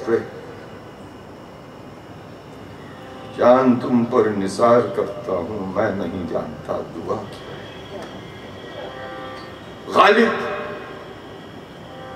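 A tanpura drones steadily with plucked strings.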